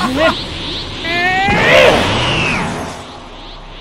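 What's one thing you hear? A young man screams with strain.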